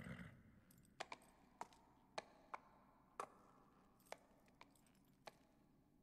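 A horse's hooves clop on stone.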